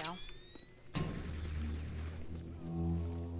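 Electrical sparks crackle and fizz.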